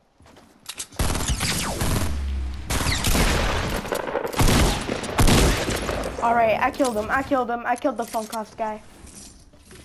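Gunshots fire in rapid, loud bursts.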